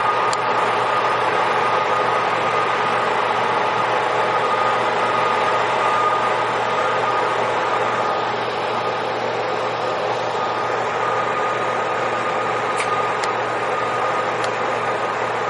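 Steel wheels rumble and squeal on the rails.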